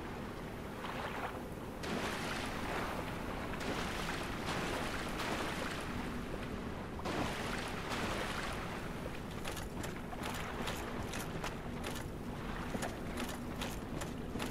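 Footsteps splash and slosh through shallow water.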